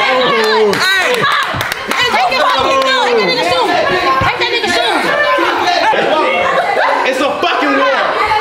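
Several young men shout and cheer excitedly.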